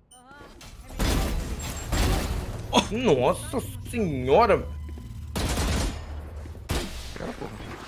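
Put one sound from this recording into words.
Rapid gunfire bursts out in quick volleys.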